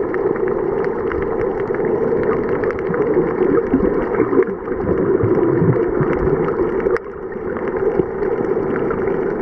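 Water rushes with a low, muffled hum underwater.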